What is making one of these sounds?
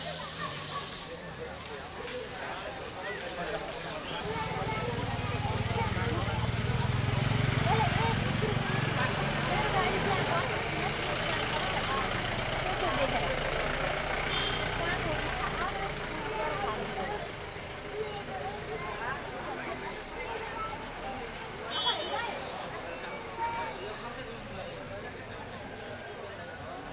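A crowd of men and women talk and murmur all around outdoors.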